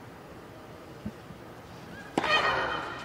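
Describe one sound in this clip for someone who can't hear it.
A tennis racket strikes a ball on a serve.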